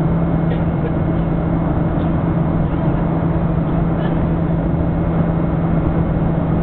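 A jet engine roars steadily with a deep, constant hum.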